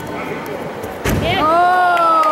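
A body thuds heavily onto a mat.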